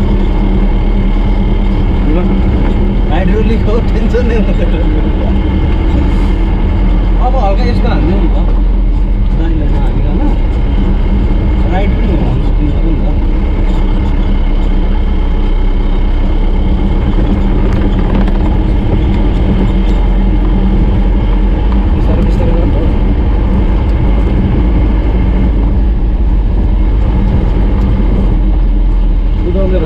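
A vehicle engine drones steadily from inside the cab.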